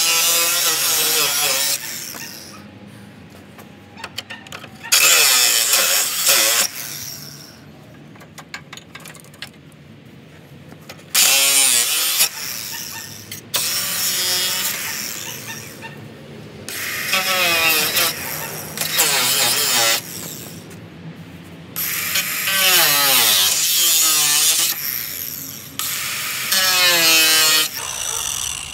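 A power grinder whines loudly against metal in bursts, starting and stopping.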